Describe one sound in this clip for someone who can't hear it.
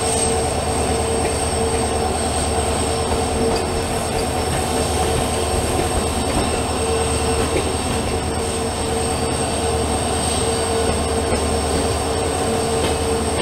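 A train rumbles steadily along the rails, its wheels clattering.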